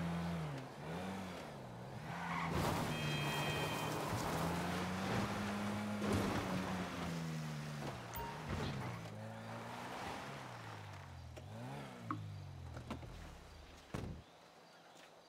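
A truck engine hums and revs up and down.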